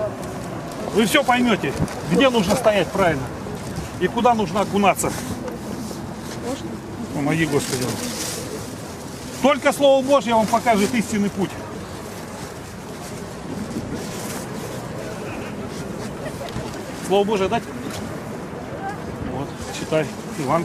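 A man speaks close by, calmly and in short bursts.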